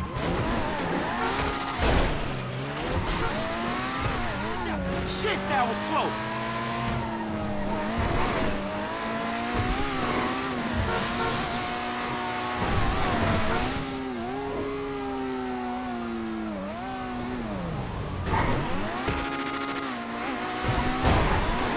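A car engine hums and revs as a car drives along a road.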